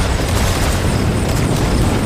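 A flamethrower roars in a video game.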